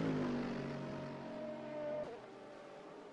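Race car engines roar loudly close by.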